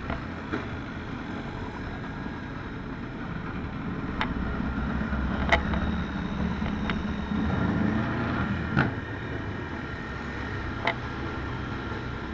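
A race car engine rumbles nearby.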